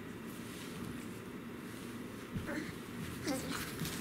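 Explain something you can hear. Small bare feet pat on a carpet.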